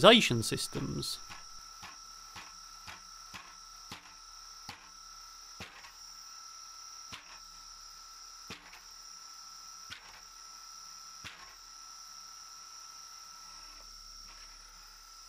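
A small mechanism ticks at a regular pace.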